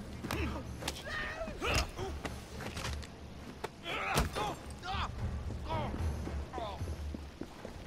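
A man grunts and cries out in pain.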